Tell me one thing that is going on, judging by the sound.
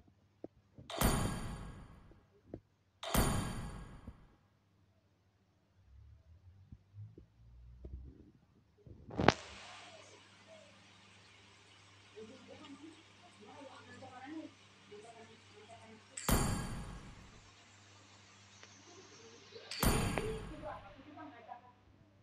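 A game's menu chimes briefly as panels pop open.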